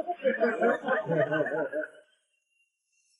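A man speaks into a phone close by.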